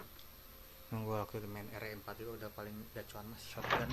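A door creaks open slowly.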